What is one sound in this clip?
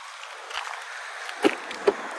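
A car door handle clicks as it is pulled.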